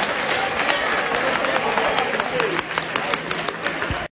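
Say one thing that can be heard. Hands clap sharply.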